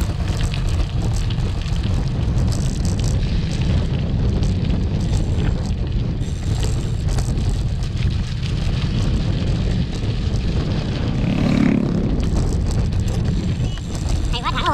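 Tyres crunch and rattle over a rough dirt road.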